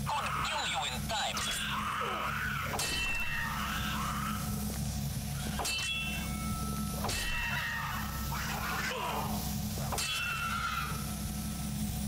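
A creature snarls and shrieks.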